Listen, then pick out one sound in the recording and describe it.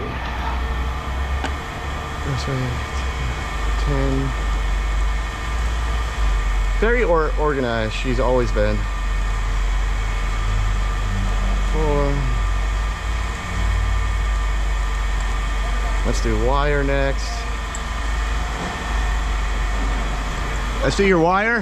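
A machine hums steadily nearby.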